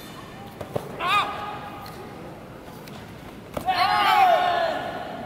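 Young men shout sharply in short bursts in a large echoing hall.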